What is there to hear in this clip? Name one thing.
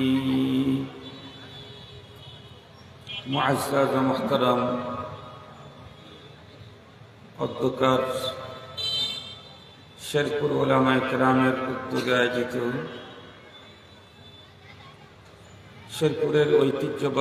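A middle-aged man preaches with animation into a microphone, his voice booming through loudspeakers in bursts with pauses.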